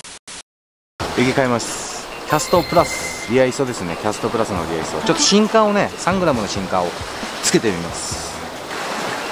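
Another young man talks calmly close by.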